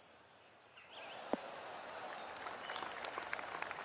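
A crowd of spectators cheers and applauds outdoors.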